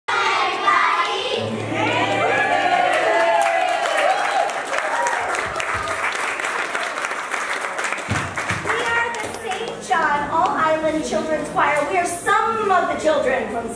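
A choir of young children sings together in a large room.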